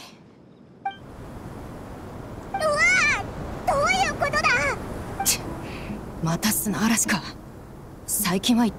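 Wind howls and rushes steadily.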